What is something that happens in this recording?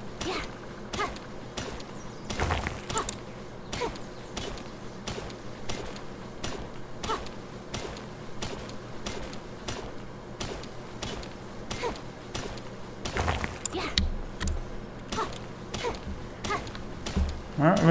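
A pickaxe strikes rock again and again at a steady pace.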